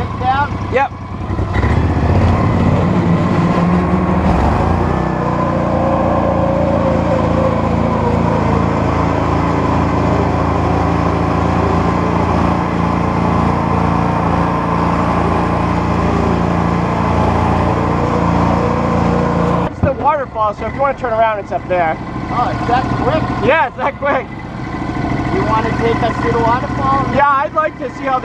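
Tyres roll and bump over a rough dirt trail.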